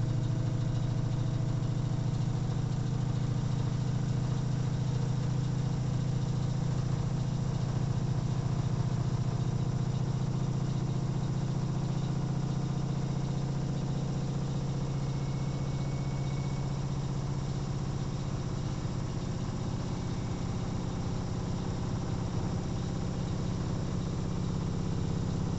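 Water sloshes and churns inside a washing machine.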